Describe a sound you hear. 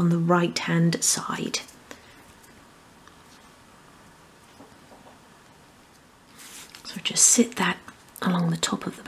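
Small wooden pieces click softly as they are handled.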